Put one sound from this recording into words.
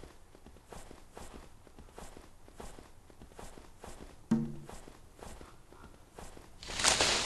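Hooves crunch steadily through snow.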